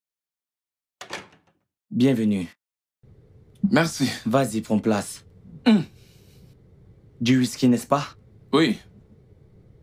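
A man talks in a room.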